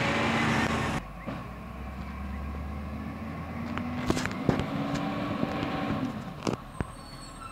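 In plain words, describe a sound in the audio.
A garbage truck approaches along a street in the distance.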